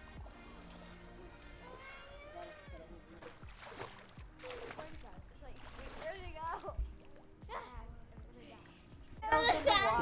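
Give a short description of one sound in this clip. Children call out faintly across an outdoor pool.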